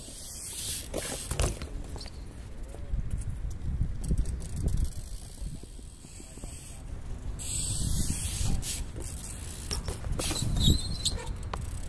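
A bike lands with a hard clatter on concrete.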